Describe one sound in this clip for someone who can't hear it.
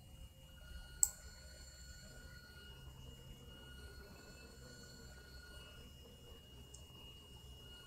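A metal mechanism clicks sharply as it turns into place.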